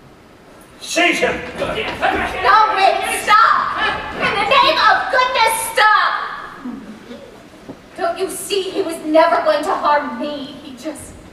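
A young woman sings loudly through a theatre sound system.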